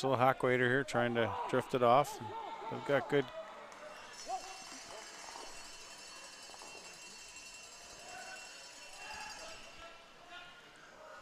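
Brooms sweep briskly across ice.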